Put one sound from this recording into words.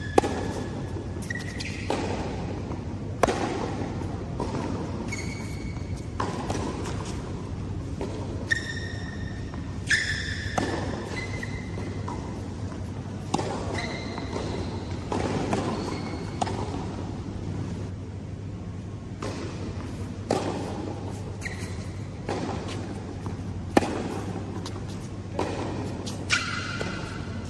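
Tennis balls are struck with rackets in a large echoing hall.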